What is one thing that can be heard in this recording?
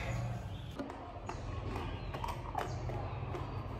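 A plastic wrapper crinkles in hands.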